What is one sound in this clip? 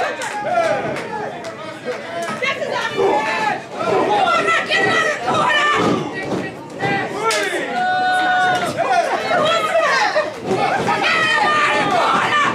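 Bodies thud and slap against a wrestling ring mat.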